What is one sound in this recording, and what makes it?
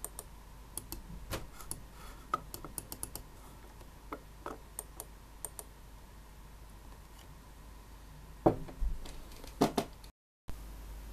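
A computer mouse clicks sharply, again and again.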